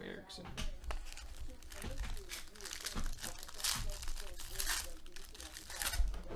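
A foil wrapper crinkles and rustles as it is torn open by hand.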